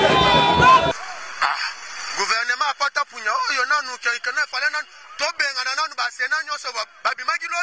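A man speaks with animation into a microphone close by.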